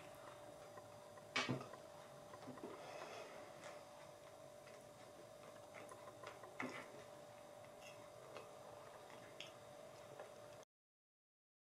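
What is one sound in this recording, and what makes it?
A young woman chews food.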